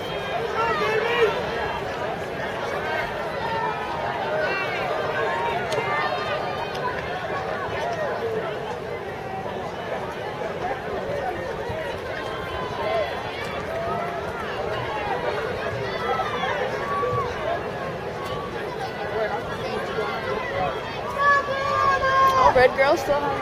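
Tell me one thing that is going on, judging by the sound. A crowd of young people chatters and cheers loudly outdoors.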